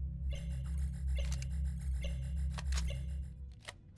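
A gun clicks as it reloads.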